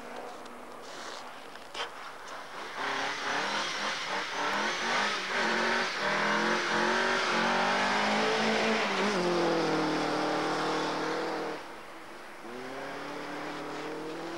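A car engine revs hard and roars as the car slides past.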